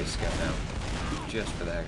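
Gunfire rattles nearby.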